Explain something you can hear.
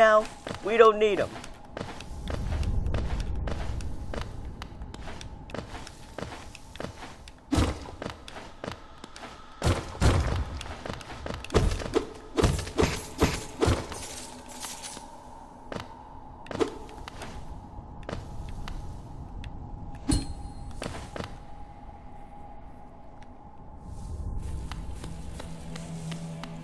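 Soft footsteps patter quickly across stone.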